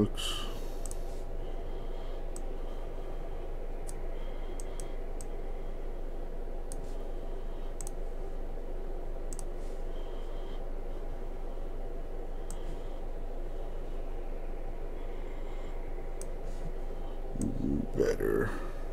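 Keys on a keyboard click softly now and then.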